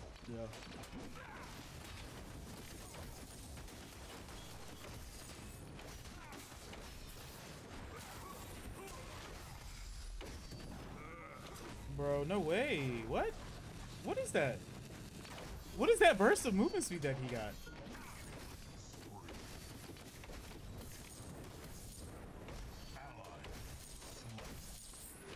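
Blades swing and clash in a fight.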